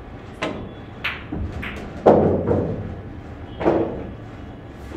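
Billiard balls clack against each other and roll across the table.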